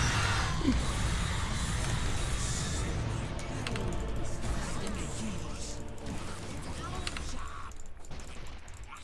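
Game spells and clashes crackle and boom.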